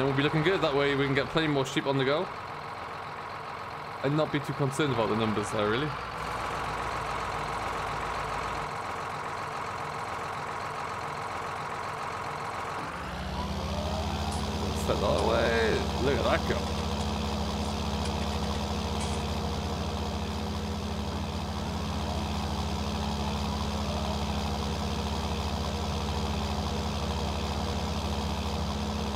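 A tractor engine rumbles steadily, growing louder partway through.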